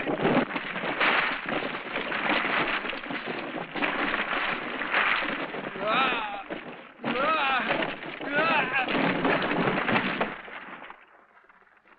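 Loose stones clatter and slide underfoot as a man runs down a slope.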